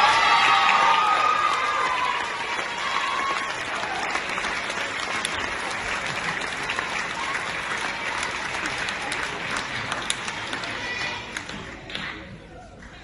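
A large crowd cheers and applauds in a big echoing hall.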